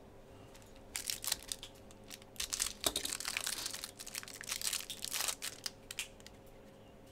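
Plastic wrapping crinkles and rustles as it is torn open.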